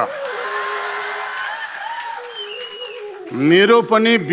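An audience laughs softly.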